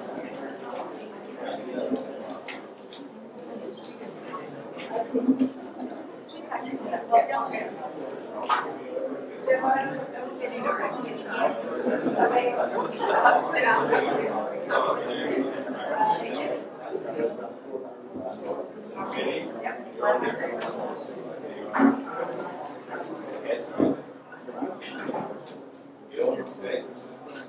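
Several men and women talk at once in a room, with a murmur of voices throughout.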